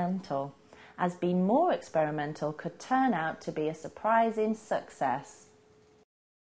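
A young woman speaks with animation into a microphone, close by.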